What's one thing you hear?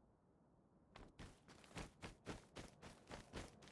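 Footsteps crunch over rocky ground at a steady pace.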